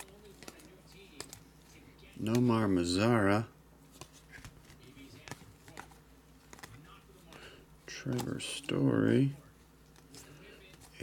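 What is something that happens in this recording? Trading cards rustle and click softly as they are flipped through by hand.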